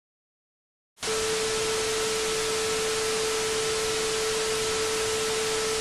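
A shrill steady beep sounds.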